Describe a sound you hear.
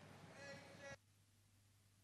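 A woman speaks through a microphone.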